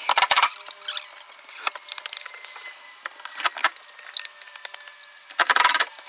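A power drill whirs in short bursts against wood.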